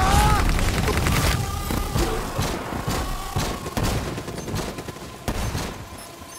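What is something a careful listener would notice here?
Gunshots fire in quick bursts, then in scattered single shots.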